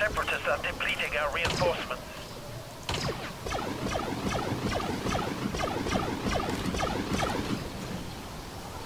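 Rapid laser blaster fire zips and crackles nearby.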